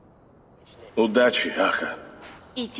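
A man speaks in a deep, friendly voice.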